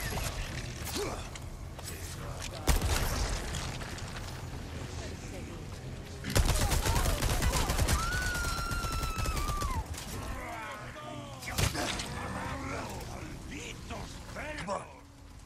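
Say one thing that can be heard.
Men groan and shout angrily nearby.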